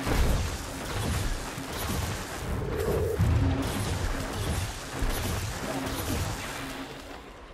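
Deep rumbling booms roll underneath.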